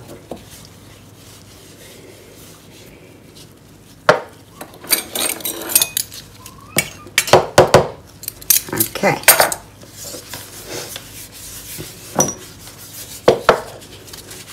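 Small objects knock down onto a wooden table.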